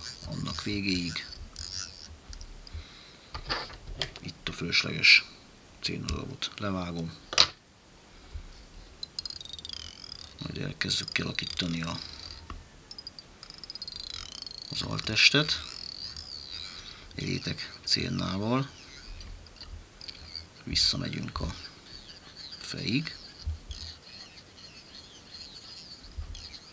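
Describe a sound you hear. Thread rasps softly as it is wound around a small hook.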